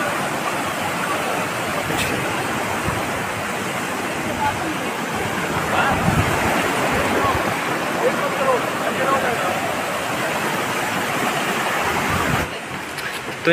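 A mountain stream rushes and splashes over rocks.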